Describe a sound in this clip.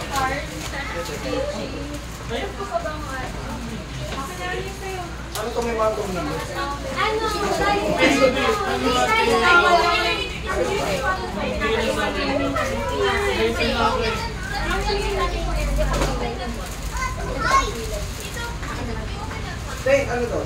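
Several adults and children chatter and talk over one another close by.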